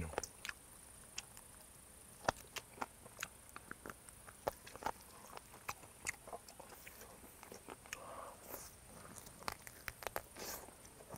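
A man chews food wetly and smacks his lips close to a microphone.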